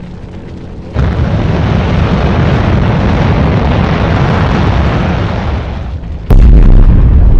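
A rocket thruster roars loudly.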